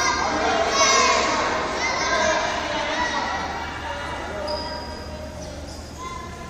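Young girls call out to each other in an echoing gym.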